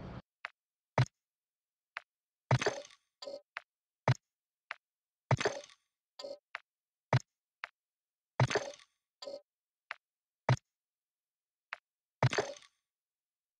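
Menu clicks and soft whooshes sound one by one.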